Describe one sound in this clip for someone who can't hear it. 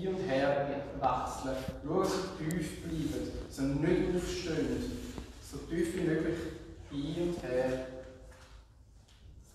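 A man speaks calmly and clearly.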